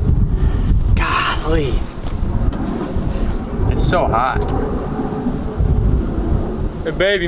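A teenage boy talks casually close by.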